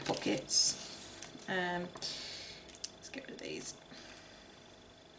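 A plastic wrapper crinkles and rustles as it is handled.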